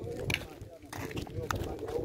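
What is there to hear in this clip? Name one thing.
Footsteps scuff on paving stones nearby.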